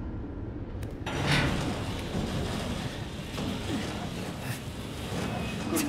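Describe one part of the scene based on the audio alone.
A wooden door creaks open slowly.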